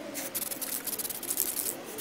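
An aerosol spray can hisses in short bursts.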